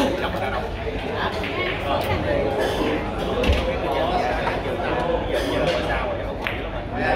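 Several adult men and women chat quietly in the background.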